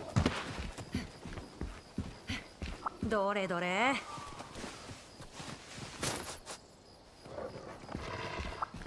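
Footsteps thud on rough ground.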